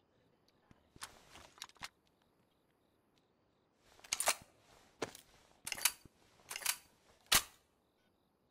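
Rummaging clatters and clicks in a wooden crate.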